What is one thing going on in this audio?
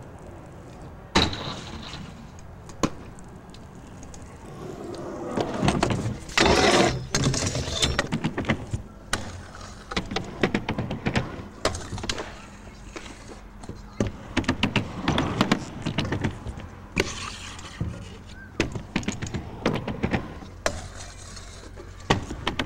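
Scooter wheels roll and rumble over concrete.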